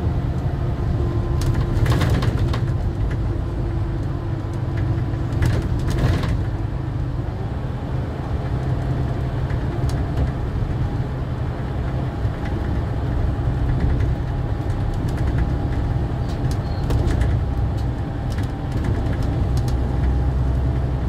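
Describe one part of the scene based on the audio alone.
A bus engine drones steadily with a low rumble.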